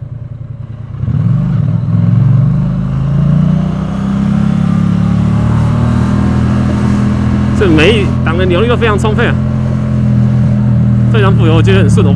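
A motorcycle engine rumbles steadily and revs up as the bike pulls away.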